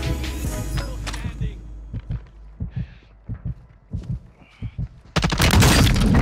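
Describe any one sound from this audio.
Gunshots crack in short, rapid bursts.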